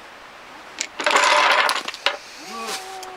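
Wooden blocks clatter as a tower of blocks collapses onto a table.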